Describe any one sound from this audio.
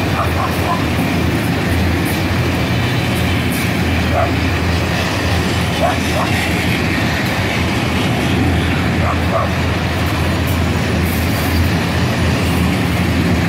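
A long freight train rumbles past close by, its wheels clattering over the rail joints.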